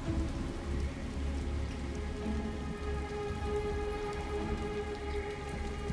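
Rain pours steadily outdoors.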